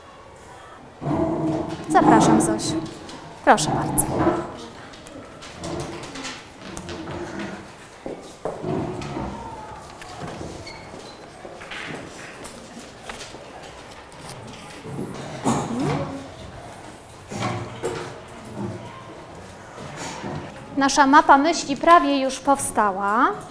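Children chatter and call out in a room.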